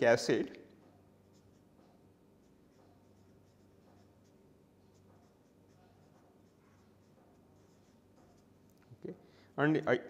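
A felt marker squeaks softly on paper.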